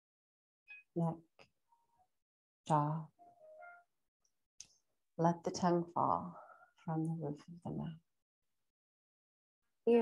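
A woman speaks slowly and calmly, close by.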